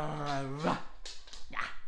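A young person squeals with laughter close by.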